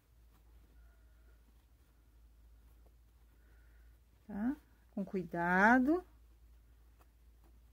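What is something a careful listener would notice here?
Fabric rustles softly as hands turn and fold it.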